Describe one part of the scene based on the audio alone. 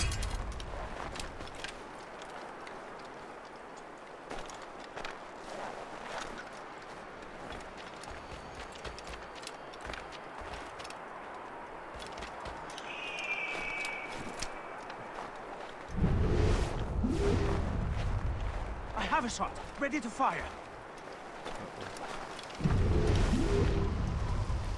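Footsteps crunch quickly over snow.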